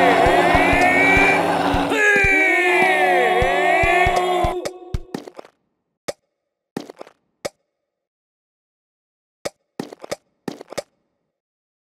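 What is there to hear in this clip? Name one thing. Short soft pops sound as food pieces land on a stack.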